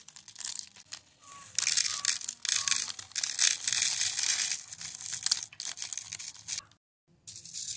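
Small plastic beads pour from a crinkling plastic bag into a plastic box.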